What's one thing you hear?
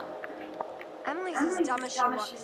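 A young woman speaks playfully, close by.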